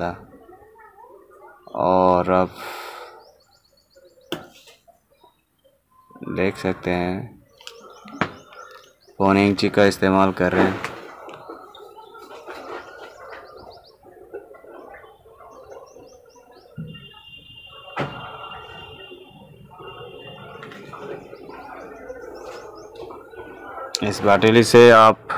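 A chisel scrapes and chips at wood.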